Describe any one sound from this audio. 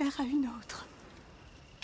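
A young woman pleads in a shaken voice.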